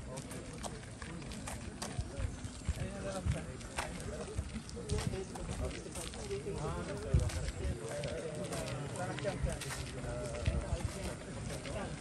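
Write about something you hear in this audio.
Footsteps scuff on a paved road.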